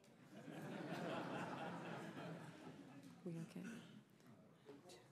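A crowd murmurs in a large room.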